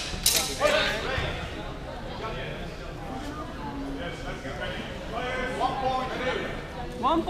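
Several men and women talk and call out in a large echoing hall.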